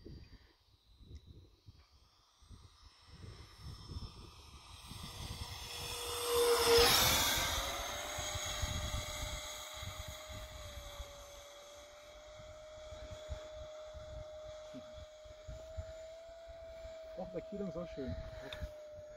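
A model electric ducted-fan jet whines as it flies low past, swelling and then fading into the distance.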